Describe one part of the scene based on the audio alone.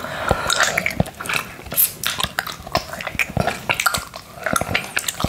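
A man licks and slurps loudly on a hard candy close up.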